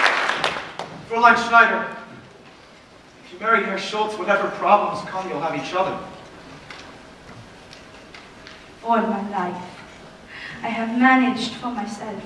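A woman speaks clearly from a stage in a large echoing hall.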